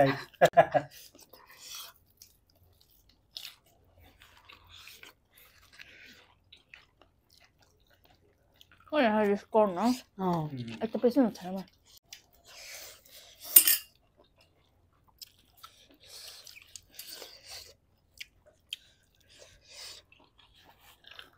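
People chew and crunch on food close to a microphone.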